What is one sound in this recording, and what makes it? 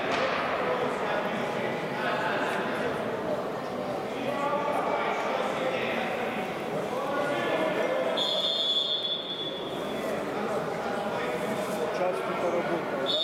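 Several people talk at a distance in a large echoing hall.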